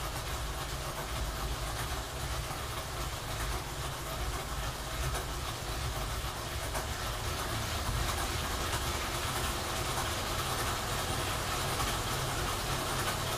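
A bike trainer whirs steadily as a rider pedals.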